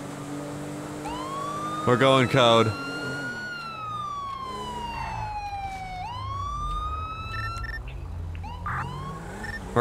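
A police siren wails, rising and falling in pitch.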